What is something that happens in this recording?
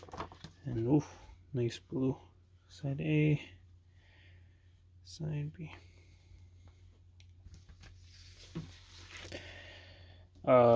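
A vinyl record is handled, with soft rubbing and tapping.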